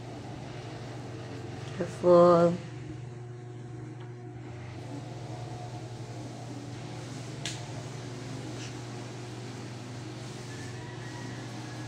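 A paintbrush dabs softly on paper.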